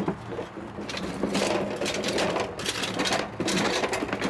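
Wooden boards knock and rattle as they are moved.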